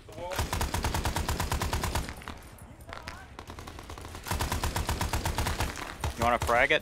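A machine gun fires long rapid bursts.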